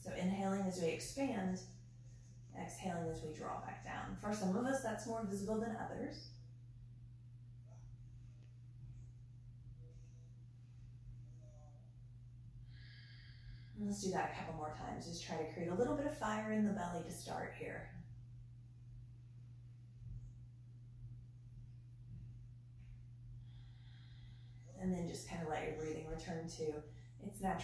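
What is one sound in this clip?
A woman speaks calmly and slowly, close by, pausing between phrases.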